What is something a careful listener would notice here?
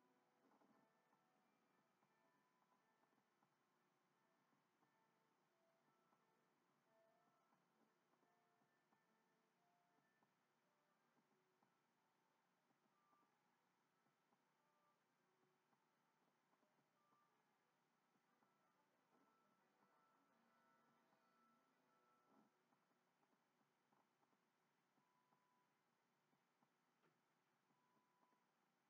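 Soft melodic music plays through a television speaker, faint and quiet.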